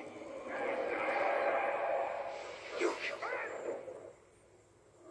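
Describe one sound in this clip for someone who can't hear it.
A young man speaks through a loudspeaker.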